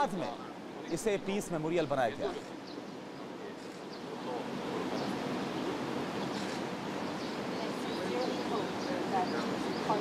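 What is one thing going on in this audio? A group of men murmur quietly among themselves outdoors.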